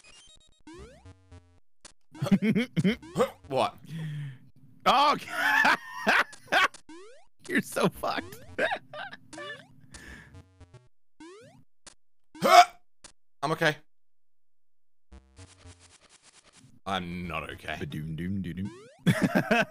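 Short blips sound as a small game character jumps.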